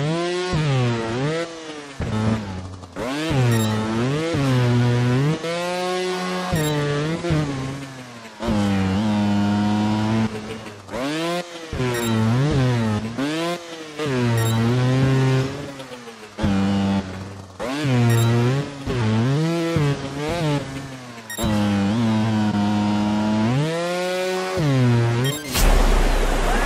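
A motorbike engine revs up and down in short bursts.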